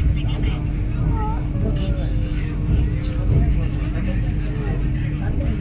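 A train rumbles along the track with a steady low roar.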